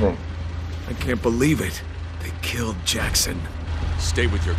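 A man speaks nervously.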